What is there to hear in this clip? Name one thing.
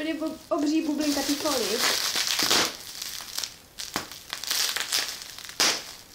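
Plastic wrapping crinkles and rustles in hands.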